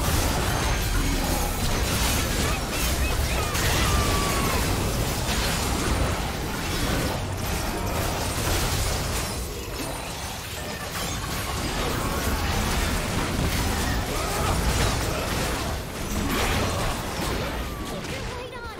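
Game spell effects burst and crackle in quick succession during a fight.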